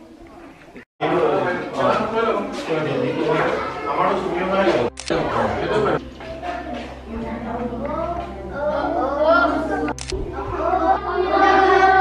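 A group of children chatter and speak out loudly close by.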